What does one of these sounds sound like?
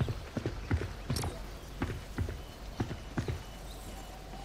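Footsteps thud on a tiled roof.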